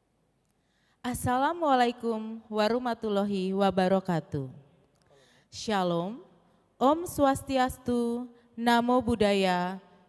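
A woman speaks calmly into a microphone, heard through loudspeakers.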